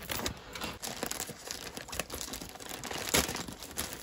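Scissors snip through a plastic mailer bag.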